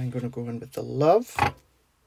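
A paper cutout is lifted with a light rustle.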